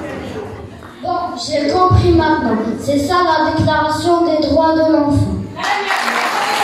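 A young boy speaks loudly through a microphone and loudspeakers in a large echoing hall.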